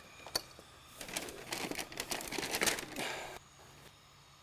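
Food sizzles loudly in a frying pan.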